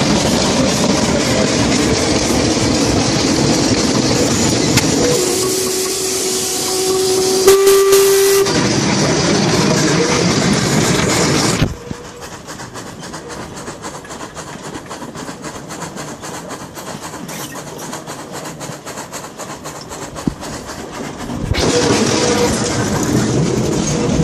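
A steam train rumbles and clatters along the tracks.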